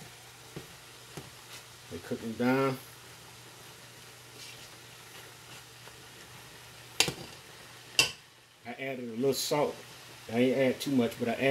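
A spoon stirs and clinks against a metal pot.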